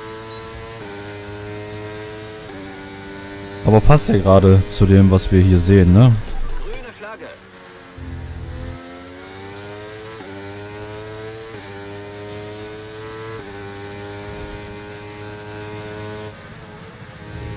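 A racing car engine whines and shifts gears.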